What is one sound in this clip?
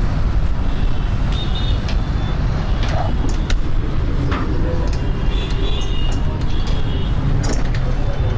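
An eraser rubs and squeaks across a whiteboard.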